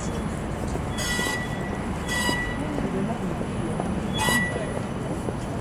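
A tram's bell chimes a few times.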